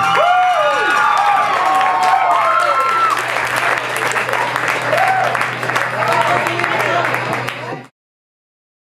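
An audience cheers and whistles.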